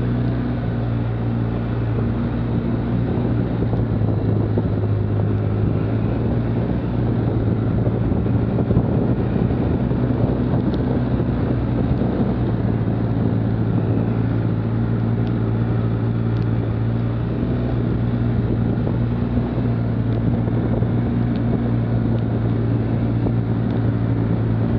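Tyres crunch over leaves and dirt on a bumpy trail.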